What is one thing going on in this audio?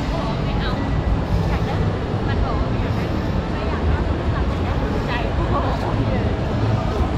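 A crowd of people chatters and murmurs nearby in a large, echoing hall.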